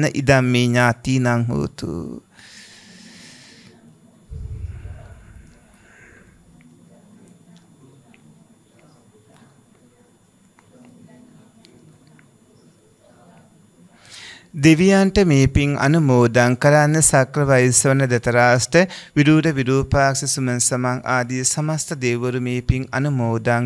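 A man speaks calmly and steadily into a microphone, with pauses.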